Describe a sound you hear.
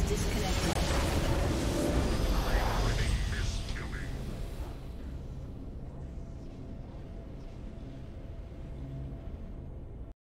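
Triumphant fanfare music plays.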